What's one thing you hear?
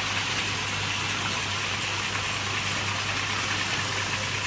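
Water bubbles and trickles steadily in a tank.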